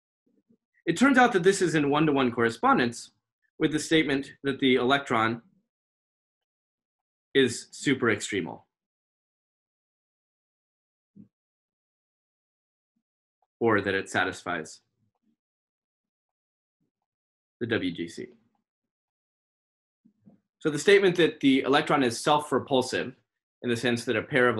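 A man lectures calmly over an online call, pausing now and then.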